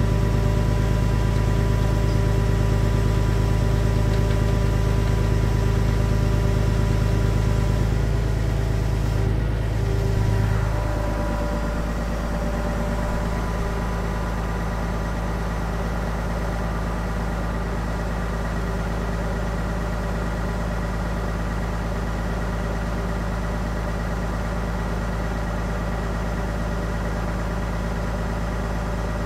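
A diesel engine idles loudly and steadily close by.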